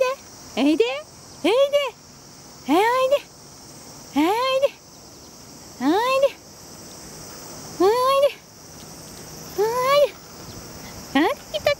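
A dog whines loudly in high, rising cries, again and again.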